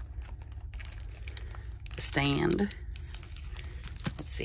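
Plastic cases clatter and tap as they are picked up and handled.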